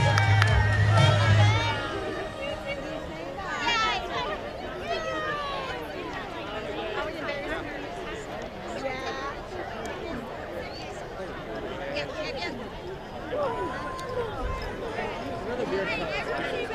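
A large crowd of young people chatters, cheers and shouts excitedly outdoors.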